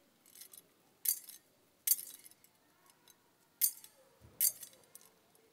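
A censer's chain clinks as it swings.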